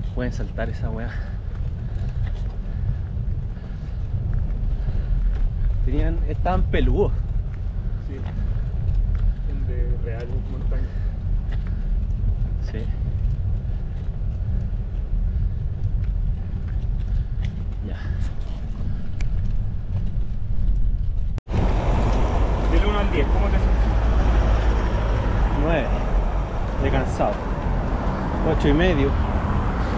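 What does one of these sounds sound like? A car's engine rumbles steadily as it drives.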